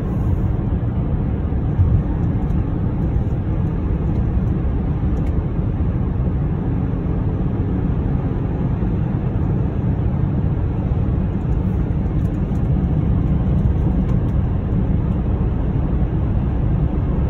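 A car drives along a road, its engine and tyres rumbling steadily.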